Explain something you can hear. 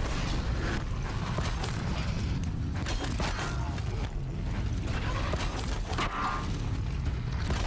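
Mechanical beasts growl and clank nearby.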